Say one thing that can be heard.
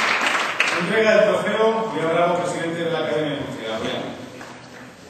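A man speaks into a microphone over loudspeakers in a large echoing hall.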